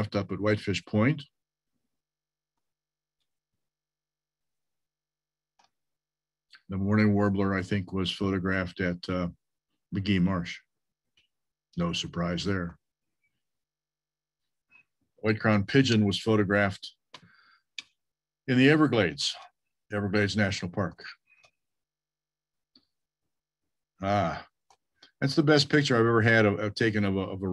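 An elderly man speaks calmly over an online call, pausing between phrases.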